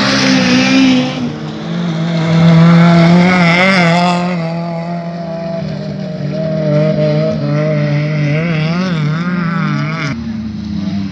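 A rally car engine roars and revs hard as the car speeds past close by, then fades into the distance.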